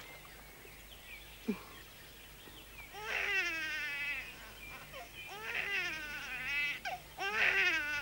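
A woman sobs quietly.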